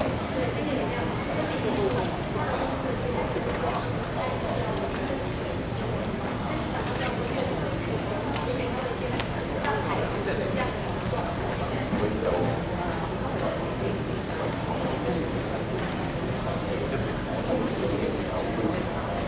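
A man speaks over a loudspeaker in a large echoing hall.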